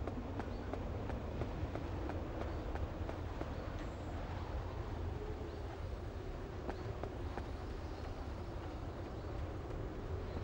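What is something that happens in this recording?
Footsteps splash quickly on a wet metal deck.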